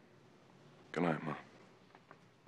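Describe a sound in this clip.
A man speaks a few words softly up close.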